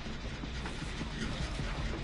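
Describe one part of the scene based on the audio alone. A body thumps over a wooden railing.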